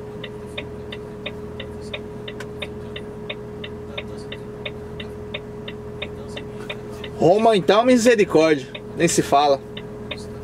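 A vehicle's turn signal ticks steadily.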